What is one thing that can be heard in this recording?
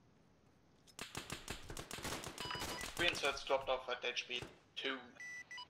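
Gunshots fire in quick bursts close by.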